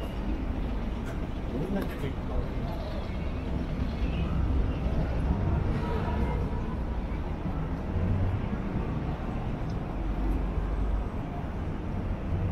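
A low city hum and distant traffic rumble outdoors.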